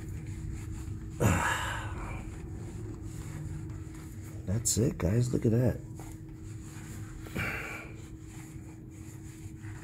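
A cloth rubs and wipes against metal.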